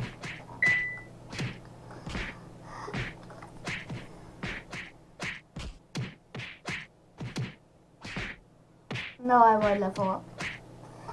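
A chest is struck over and over in quick, sharp hits.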